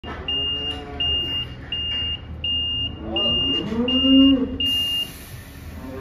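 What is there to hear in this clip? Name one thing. A reversing truck beeps in a steady, repeating pattern.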